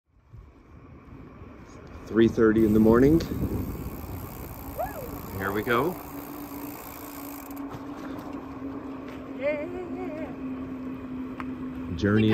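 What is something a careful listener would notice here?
A bicycle rolls along a paved road.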